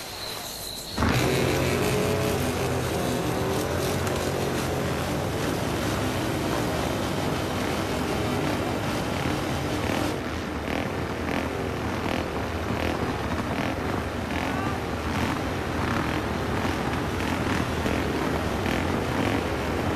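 Motorcycle engines roar loudly.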